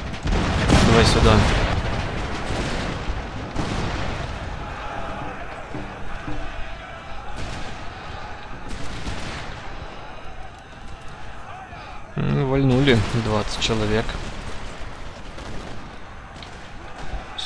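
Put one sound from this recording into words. Muskets crackle in scattered volleys across a battlefield.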